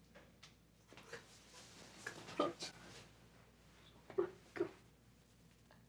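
Bedclothes rustle as people move on a bed.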